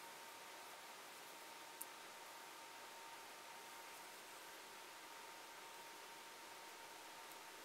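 A carving knife scrapes and scratches on wood.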